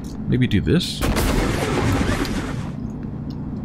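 A foam gun fires with a loud hissing, sputtering burst.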